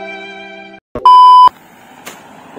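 A loud steady test tone beeps briefly.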